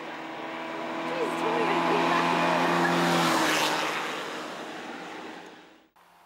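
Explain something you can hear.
Tyres hiss on tarmac as a car rushes past.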